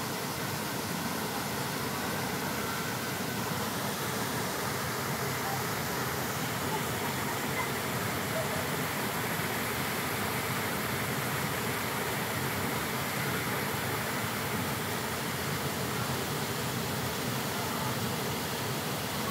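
Children shout and laugh playfully nearby.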